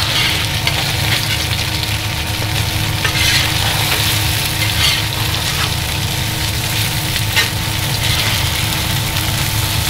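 A metal spatula scrapes across a pan.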